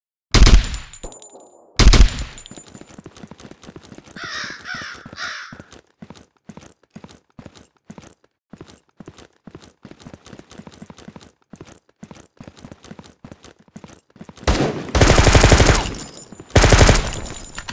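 Gunshots bang loudly in bursts.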